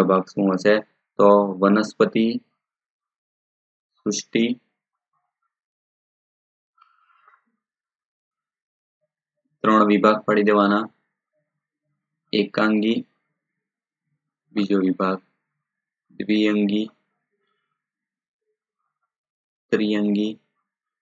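A man speaks calmly into a close microphone in short phrases with pauses, as if teaching.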